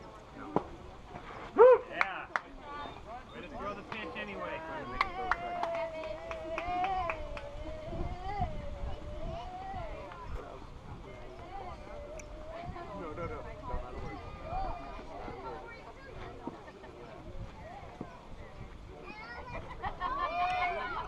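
Young players and people nearby chatter and call out across an open field outdoors.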